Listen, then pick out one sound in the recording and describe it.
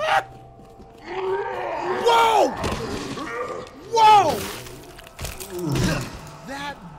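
A young man shouts and exclaims excitedly into a close microphone.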